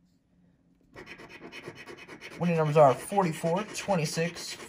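A coin scratches briskly across a lottery ticket.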